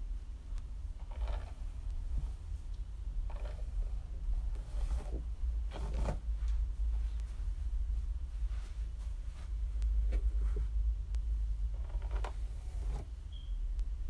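A brush swishes through long hair in short strokes.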